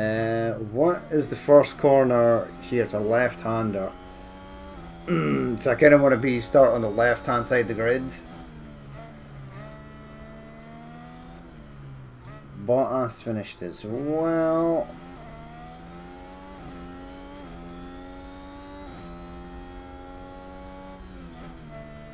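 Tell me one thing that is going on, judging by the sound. A racing car engine whines at high revs, shifting up and down through the gears.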